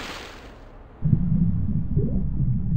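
A low muffled rumble sounds underwater.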